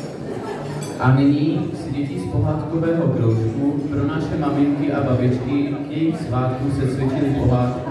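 A young man speaks through a microphone over loudspeakers, loud and echoing.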